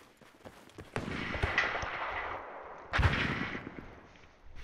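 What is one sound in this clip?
Loud blasts boom close by.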